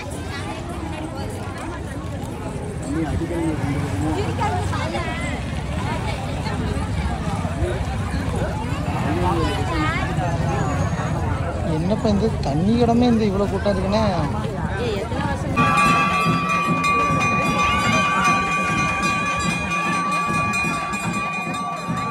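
A large crowd of men and women chatter and call out outdoors.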